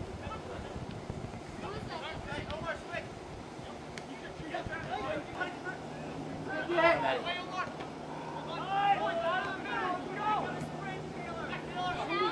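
Young men shout to each other at a distance outdoors.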